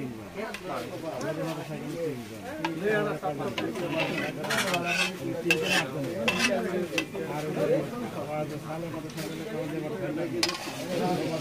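A metal ladle clinks against a metal pan.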